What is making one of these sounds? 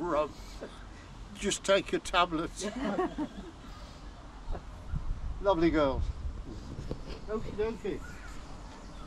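An elderly man speaks calmly nearby, outdoors.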